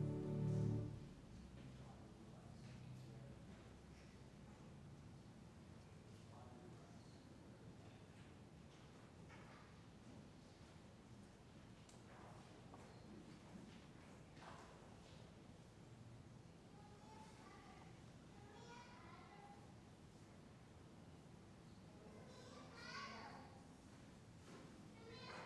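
Footsteps shuffle softly across a large, echoing room.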